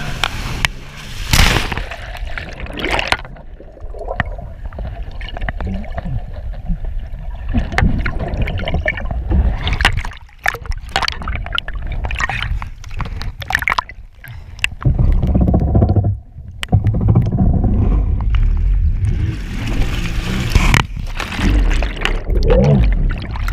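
Water splashes and sprays around a jet ski.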